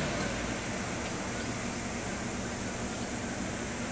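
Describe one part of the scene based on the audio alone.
A van's engine idles nearby.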